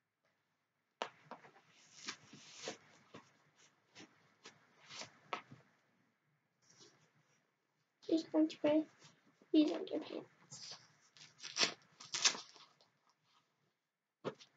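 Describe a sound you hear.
Fabric rustles as doll clothes are pulled on and off.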